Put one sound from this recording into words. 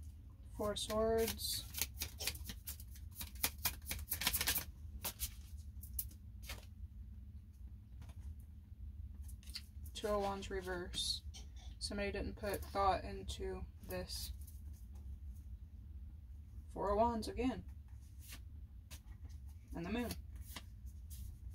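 Cards flick and riffle as a deck is shuffled.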